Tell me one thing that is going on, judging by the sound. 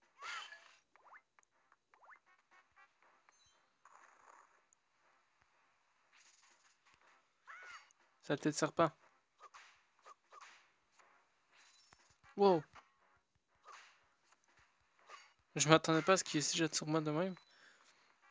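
Short electronic game sound effects chime and whoosh in bursts.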